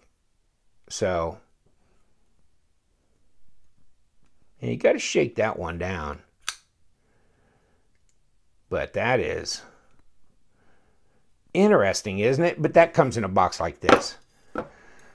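A folding knife blade snaps open and shut with sharp clicks.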